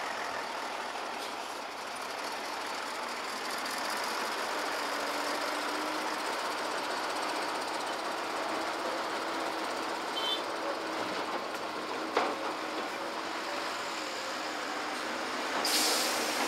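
A dump truck engine drones as the truck drives slowly past.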